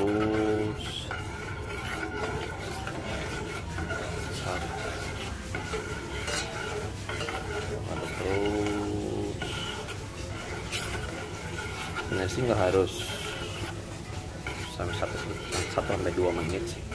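A spoon scrapes and clinks against a metal pot while stirring.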